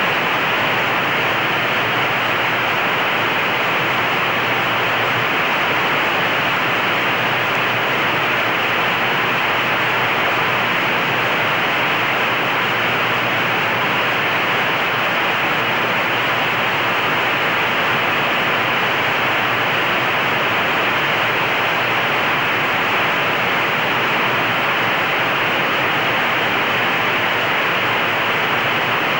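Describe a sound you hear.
Jet engines roar steadily as a large airliner rolls down a runway.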